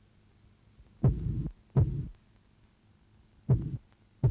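Heavy footsteps thud slowly on a floor.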